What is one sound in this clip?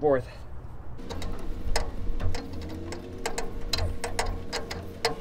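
A wrench clicks and scrapes on metal bolts.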